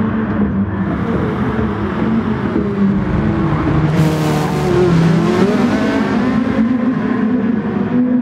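Several race car engines whine past close by.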